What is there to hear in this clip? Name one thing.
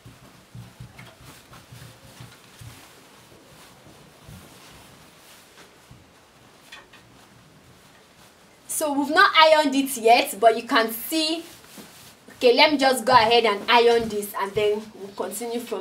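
Fabric rustles and crumples as hands fold it.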